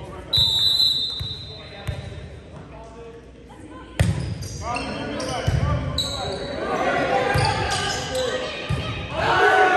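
A volleyball thumps off hands during a rally.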